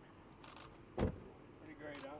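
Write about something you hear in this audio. A car door swings shut with a solid thump.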